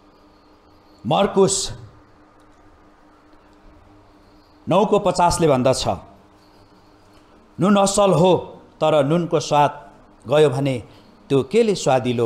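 A man speaks with emphasis through a microphone in a room with some echo.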